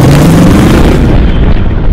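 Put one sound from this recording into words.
Wind rushes loudly past an open cargo door.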